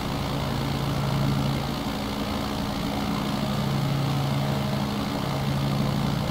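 A small propeller plane's engine drones steadily.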